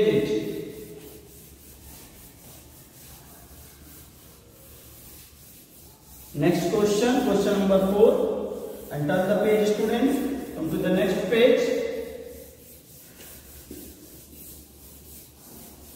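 A cloth rubs across a chalkboard.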